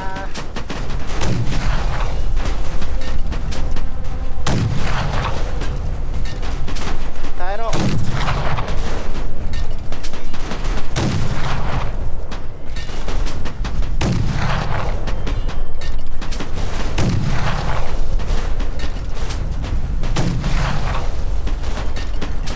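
Explosions blast again and again.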